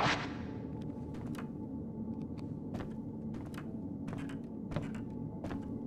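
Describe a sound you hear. Footsteps creak on a wooden floor.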